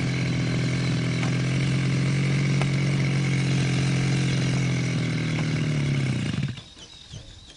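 A small toy car's electric motor whines steadily, then cuts out.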